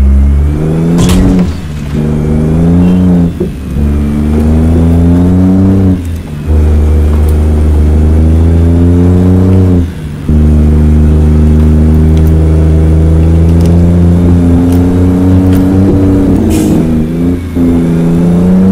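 A truck's diesel engine drones loudly, rising and dropping in pitch as the gears shift.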